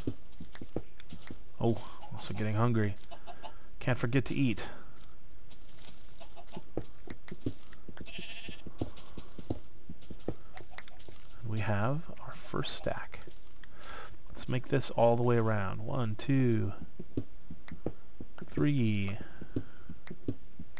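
A pickaxe chips into stone in quick, repeated knocks.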